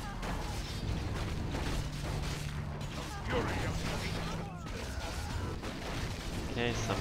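Weapons clash and clang in a busy battle.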